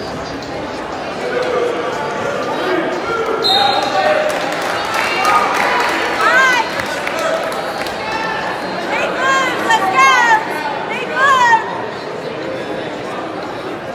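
A crowd cheers and shouts steadily in a large echoing hall.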